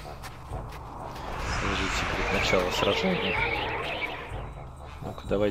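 A magic spell bursts with a bright, shimmering whoosh.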